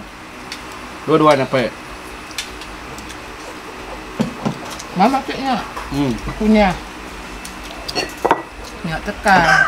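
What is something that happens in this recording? Spoons and dishes clink on a table.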